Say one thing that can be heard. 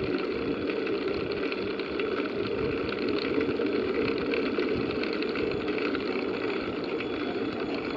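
Bicycle tyres hum on the road surface.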